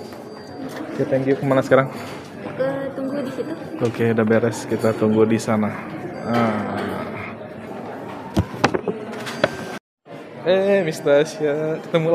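Women talk nearby in a room.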